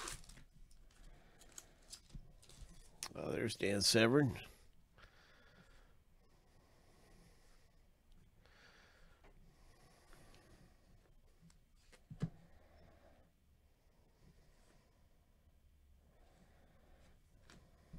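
Trading cards shuffle and slide against each other.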